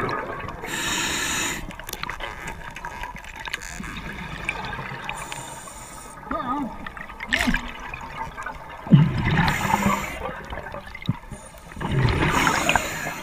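A diver's breathing regulator hisses and bubbles burst out in gushes underwater.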